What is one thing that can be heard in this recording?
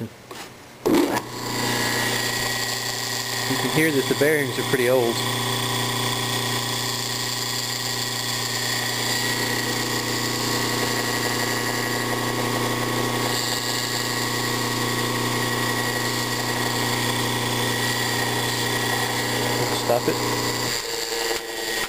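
An electric motor hums steadily while it runs.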